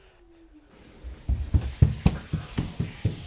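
Small bare feet patter quickly on a wooden floor.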